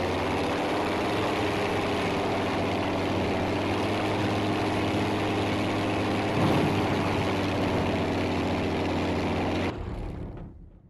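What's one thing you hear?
A propeller plane's engine roars steadily, then cuts off.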